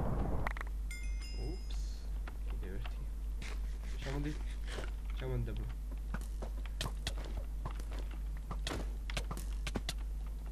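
Footsteps tap on hard stone.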